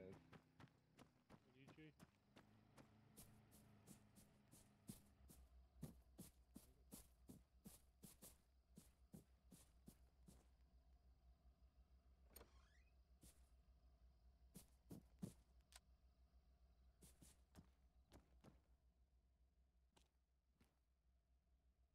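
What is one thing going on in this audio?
Footsteps pace steadily at a brisk walk.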